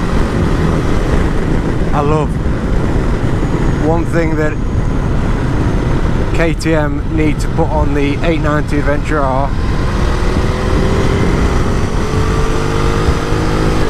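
A motorcycle engine hums steadily and then revs up.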